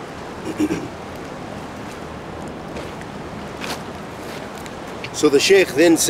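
A river flows steadily over stones.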